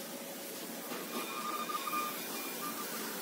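A paper tube winding machine whirs.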